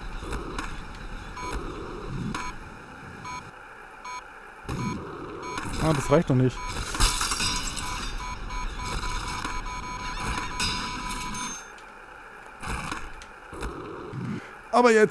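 Skateboard wheels roll and grind along ledges and rails.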